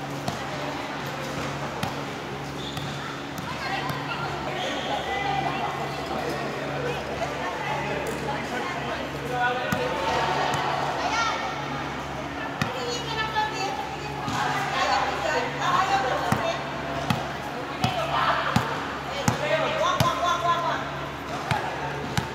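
A volleyball thumps against forearms in a large echoing hall.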